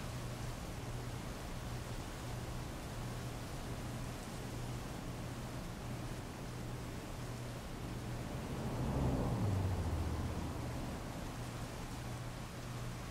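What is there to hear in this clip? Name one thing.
Heavy rain pours down steadily and splashes on wet pavement.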